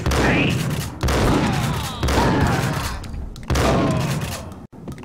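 A shotgun fires loudly, booming with a long echo.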